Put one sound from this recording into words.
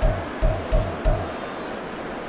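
Soft menu thumps sound as a selection moves down a list.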